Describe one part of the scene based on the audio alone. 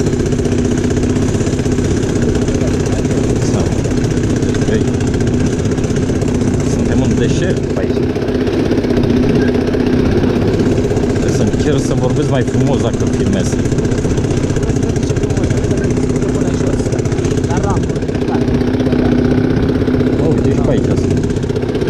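A quad bike engine hums steadily close by.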